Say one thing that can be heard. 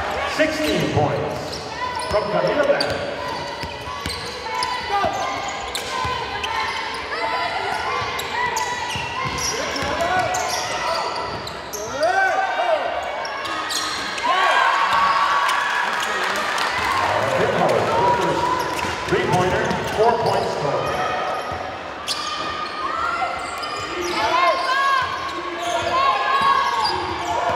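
Young women call out to each other across an echoing hall.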